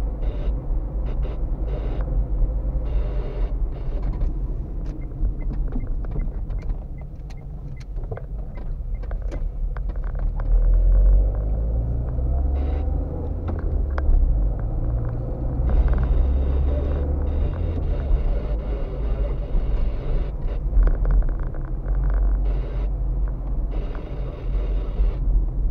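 A car engine hums low and steady from inside the car as it drives slowly.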